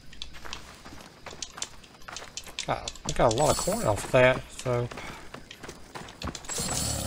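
Footsteps run quickly over stone and gravel.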